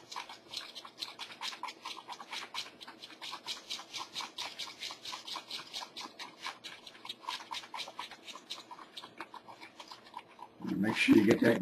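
A wooden stick stirs resin in a paper cup with quick scraping strokes.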